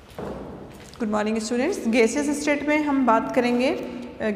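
A woman speaks calmly, as if teaching.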